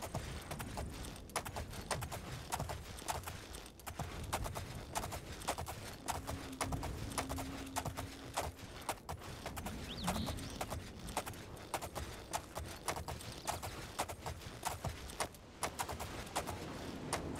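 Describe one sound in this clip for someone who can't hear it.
Footsteps swish and thud through grass at a steady walking pace.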